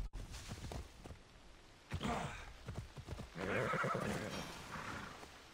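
Hooves thud on soft ground at a gallop.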